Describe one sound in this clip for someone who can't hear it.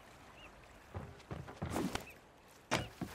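Footsteps thump on a wooden dock.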